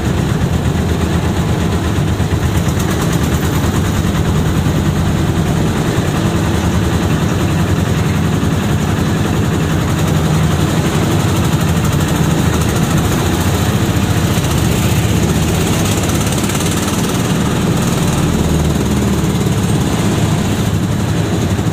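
A vehicle's engine rumbles steadily while riding.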